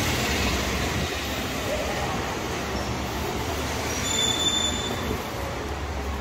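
City traffic hums steadily in the distance, outdoors.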